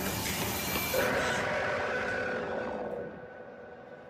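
A young woman cries out in fear close by.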